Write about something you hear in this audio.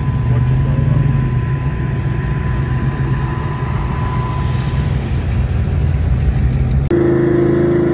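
An old car's engine rumbles as the car drives slowly past.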